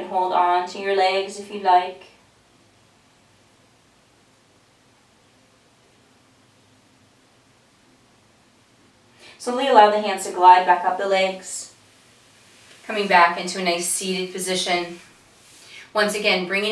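A woman speaks calmly and gently, close to a microphone.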